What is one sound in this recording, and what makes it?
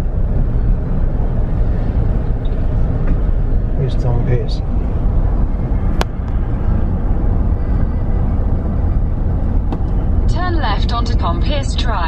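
A car engine hums steadily, heard from inside the moving car.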